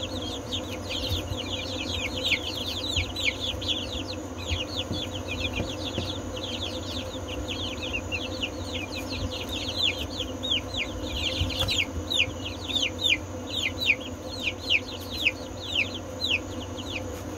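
Many chicks cheep and peep rapidly and constantly close by.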